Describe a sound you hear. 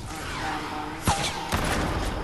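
A gunshot cracks nearby.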